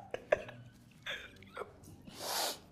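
A man laughs loudly, close by.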